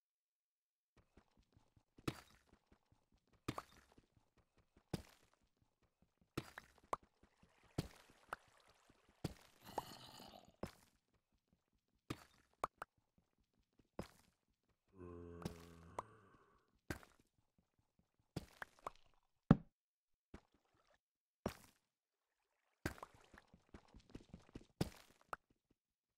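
A pickaxe strikes and breaks stone blocks with sharp knocks.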